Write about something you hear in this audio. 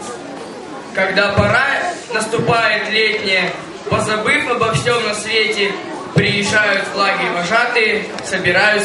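A boy speaks through a microphone and loudspeakers in an echoing hall.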